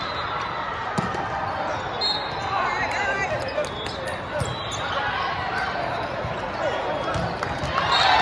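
A volleyball thuds off a player's hands.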